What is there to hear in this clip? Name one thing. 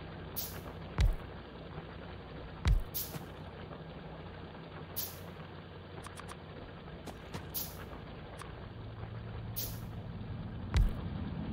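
A heavy machine thuds down into place.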